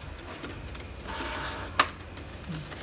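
A printer whirs as it feeds out a sheet of paper.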